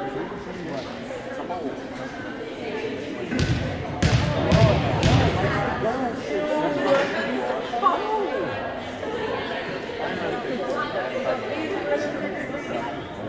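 Young players and spectators chatter and call out in a large echoing gym.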